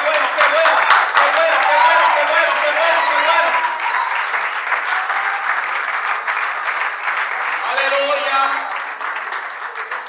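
Men and women shout and sing with excitement.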